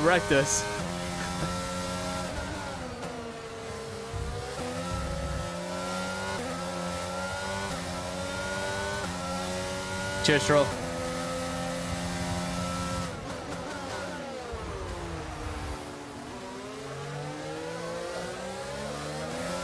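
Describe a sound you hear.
A racing car engine whines loudly, rising and dropping in pitch as it shifts gears.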